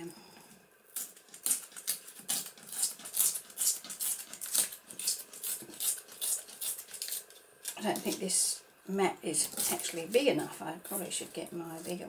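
Paper tears slowly in short, rasping bursts.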